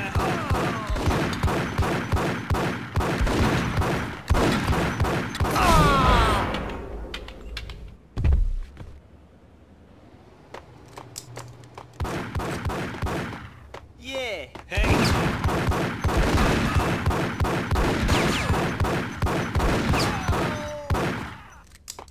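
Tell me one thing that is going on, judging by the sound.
Pistol shots fire in rapid bursts, echoing in a tiled hall.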